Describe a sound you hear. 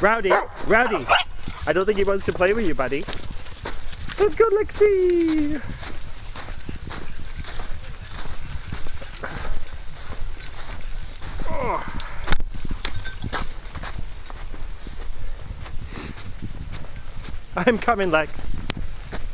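Dogs whine and yelp in high, wavering cries.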